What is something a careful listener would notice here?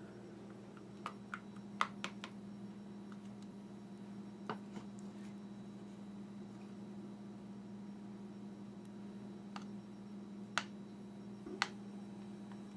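A spoon taps and scrapes against a plastic measuring cup.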